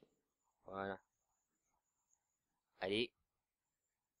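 A soft chiming tone sounds twice as a menu option is picked.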